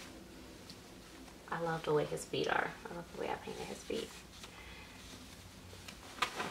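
Soft cloth rustles as a small outfit is pulled and adjusted.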